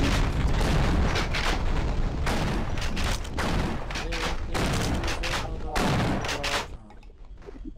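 Loud gunfire rattles in repeated bursts.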